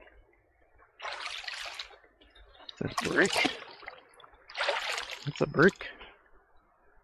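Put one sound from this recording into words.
Water splashes loudly as feet wade through a stream.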